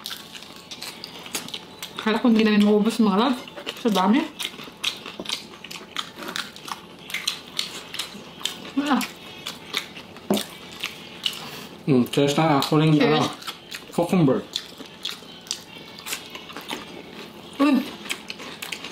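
Crunchy food crackles and is chewed loudly close to a microphone.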